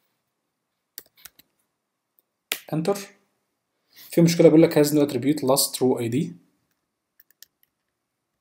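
Laptop keys click under typing fingers.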